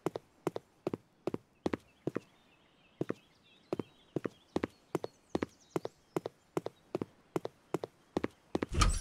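Footsteps walk steadily on hard paving.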